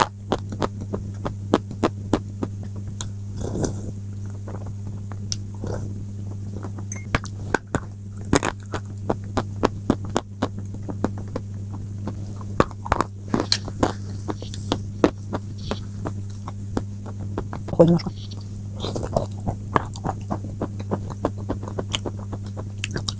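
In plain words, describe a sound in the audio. A woman eats close to a microphone with wet, smacking mouth sounds.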